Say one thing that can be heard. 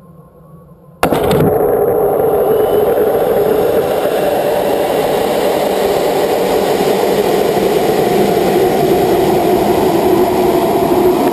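A rocket motor roars steadily as it climbs.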